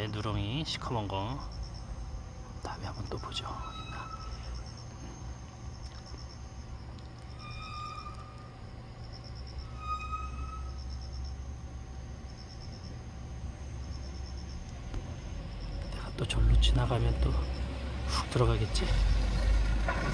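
Puppies suckle softly.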